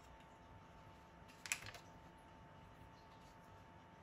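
Butter pieces drop into a plastic measuring cup.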